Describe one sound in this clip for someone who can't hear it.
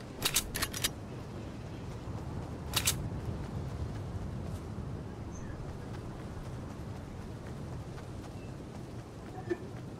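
Footsteps run quickly over wooden floor and then grass.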